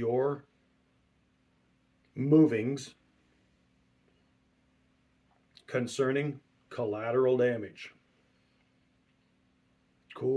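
A middle-aged man speaks calmly and close up, in short bursts with pauses.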